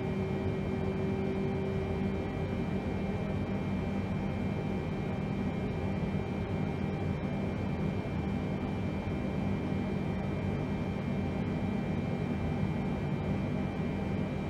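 Jet engines drone steadily with a constant low rumble and a thin high whine.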